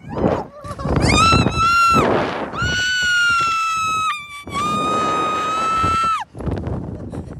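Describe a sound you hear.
A young woman screams loudly and at length, close by.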